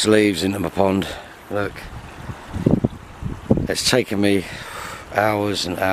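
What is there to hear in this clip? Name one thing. Water pours from a pipe and splashes into a pond.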